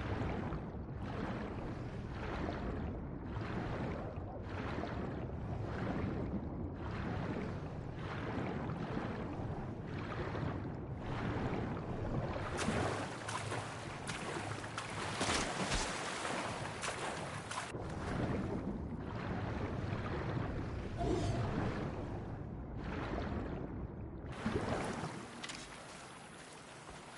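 Water splashes in steady strokes as a swimmer moves through it.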